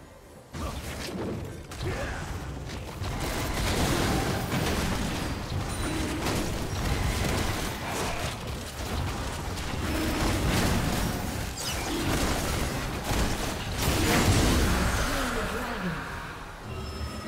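Game spells whoosh, crackle and clash in a fast battle.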